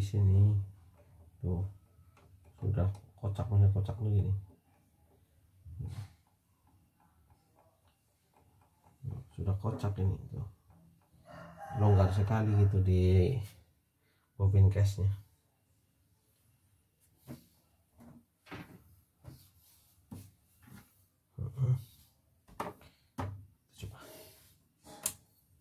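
Small plastic and metal parts click as hands handle a machine.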